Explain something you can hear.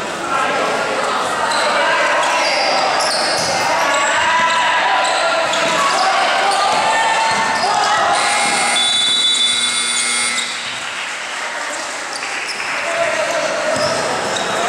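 A basketball bounces on a hard court in an echoing hall.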